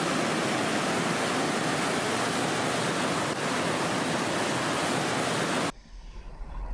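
Whitewater rushes and roars steadily down a rocky chute.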